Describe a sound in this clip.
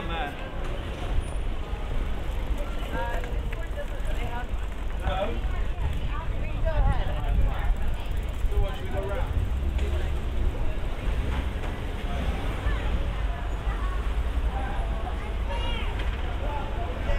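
Traffic rumbles steadily along a street outdoors.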